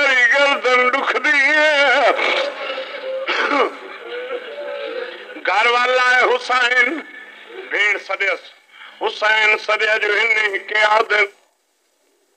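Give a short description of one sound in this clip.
A man chants with feeling through a microphone.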